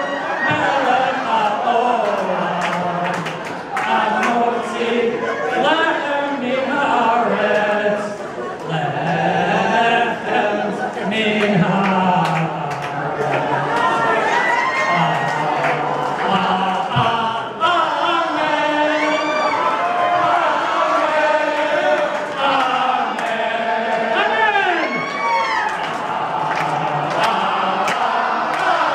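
Several men sing together through a microphone.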